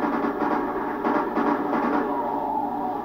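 Video game gunfire bursts rapidly through a loudspeaker.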